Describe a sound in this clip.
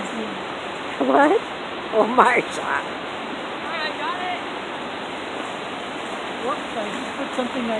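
A young woman calls out and shouts excitedly close by.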